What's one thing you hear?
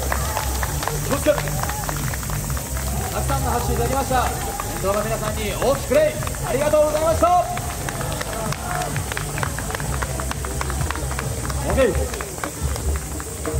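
A group of young men and women shout and chant together.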